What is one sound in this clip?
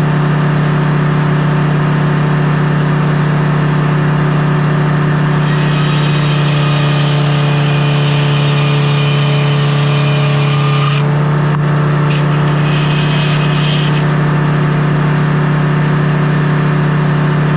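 A sawmill engine drones with a loud, steady hum.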